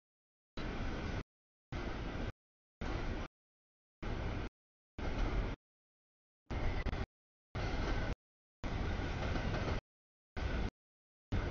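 A freight train rumbles past at close range.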